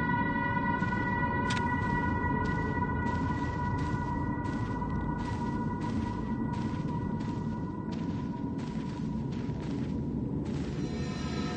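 Footsteps tread steadily across a wooden floor.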